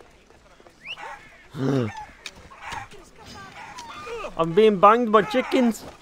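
Chickens cluck nearby.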